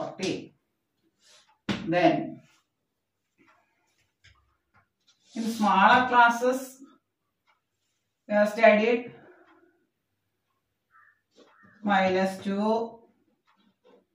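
A woman speaks calmly in short phrases, close by.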